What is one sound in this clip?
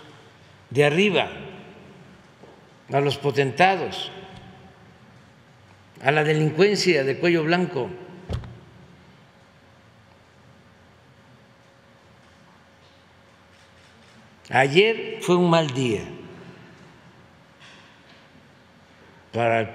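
An elderly man speaks slowly into a microphone, in short phrases with long pauses.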